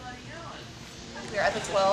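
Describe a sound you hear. A woman talks loudly and with animation close to a microphone.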